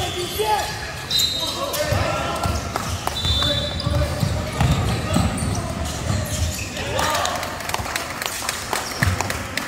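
A basketball bounces with booming thuds in a large echoing hall.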